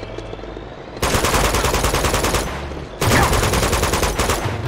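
An automatic rifle fires rapid bursts of loud shots.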